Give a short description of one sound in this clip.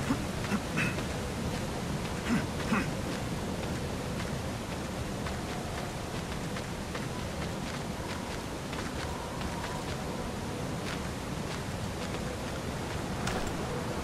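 Hands grip and scrape on ice while climbing.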